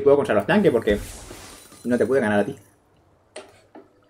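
Game characters clash in battle with magical hits and impacts.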